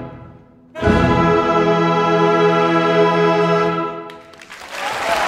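An orchestra plays a loud, sustained final chord in a large echoing hall.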